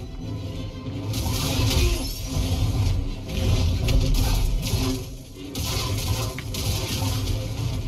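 Blades clash with sharp impacts.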